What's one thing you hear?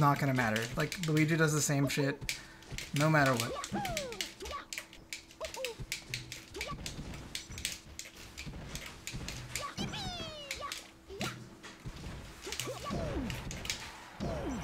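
Video game hits and zaps crack in quick bursts.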